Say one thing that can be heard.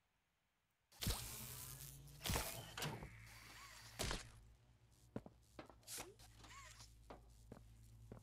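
A laser beam hums loudly.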